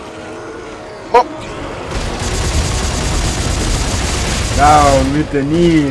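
An energy gun fires with sharp zaps.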